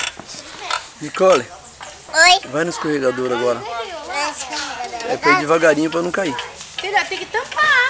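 A young girl talks nearby in a high voice.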